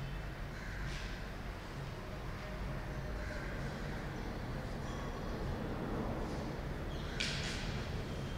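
A metal cup clinks softly against a hard surface.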